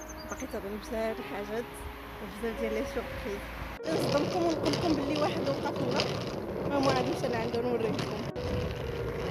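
A young woman talks cheerfully close to the microphone.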